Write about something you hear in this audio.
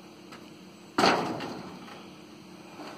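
A heavy thud rings out as a person steps onto a metal trailer.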